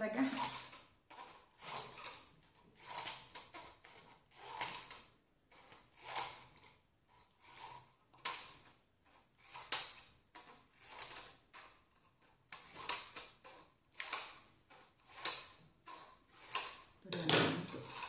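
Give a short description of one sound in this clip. Scissors snip through plastic in short repeated cuts.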